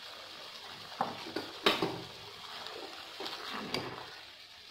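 A spoon scrapes and knocks against a metal pan as vegetables are stirred.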